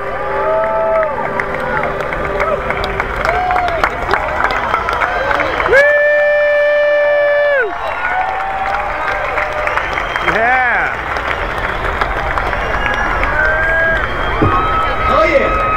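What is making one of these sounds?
A large crowd cheers and sings outdoors.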